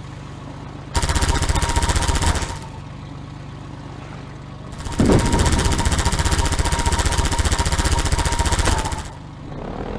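A machine gun fires in long rapid bursts.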